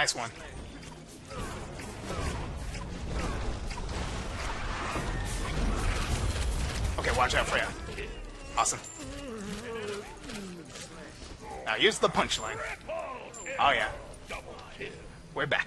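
Magic spells whoosh and clash in a fast fight.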